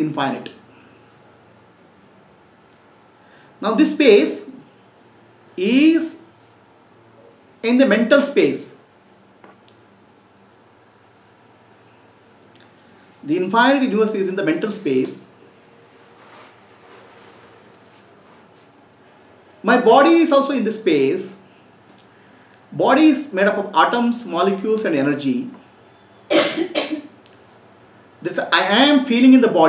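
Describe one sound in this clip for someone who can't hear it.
A middle-aged man speaks calmly into a close microphone, in short phrases with pauses.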